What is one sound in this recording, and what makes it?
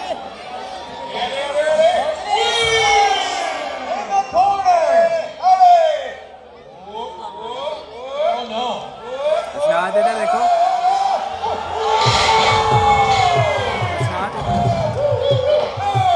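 Children shout excitedly close by.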